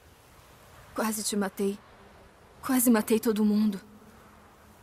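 A young woman speaks quietly and sadly, close by.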